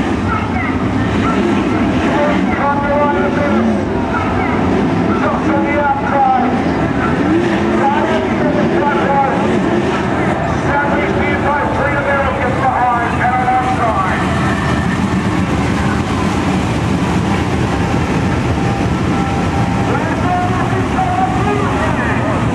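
Race car engines roar loudly, rising and falling in pitch as the cars speed past.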